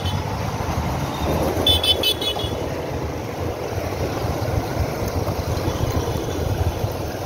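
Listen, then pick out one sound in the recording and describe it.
A tractor engine chugs ahead on the road.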